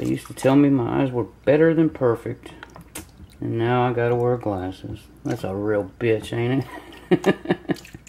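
Water sloshes and swirls in a plastic pan.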